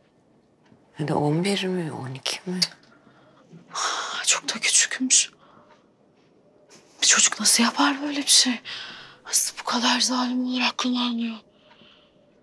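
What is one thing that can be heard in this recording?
A young woman speaks firmly and with agitation close by.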